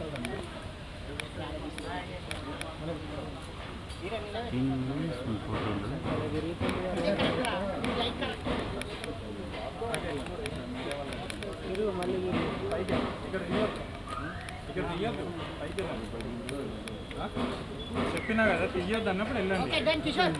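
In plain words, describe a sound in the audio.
Several men talk and call out nearby.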